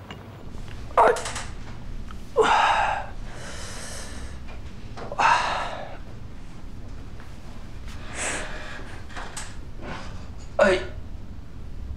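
A man groans and strains with pain.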